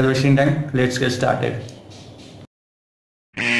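A young man speaks close by with animation.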